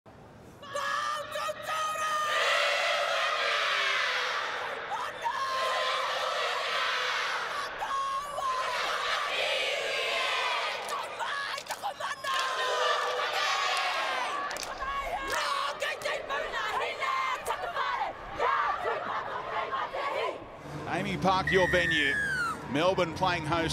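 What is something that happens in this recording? A young woman leads the chant, shouting out calls.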